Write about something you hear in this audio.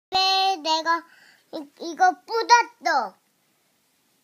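An adult speaks in a high, playful, sing-song voice close by.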